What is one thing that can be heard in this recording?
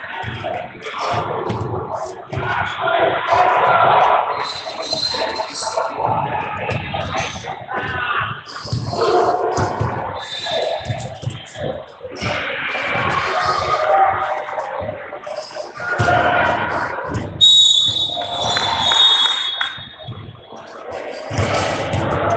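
People talk and call out in a large echoing gym.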